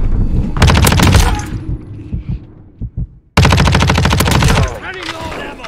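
A rapid burst of automatic gunfire rattles loudly.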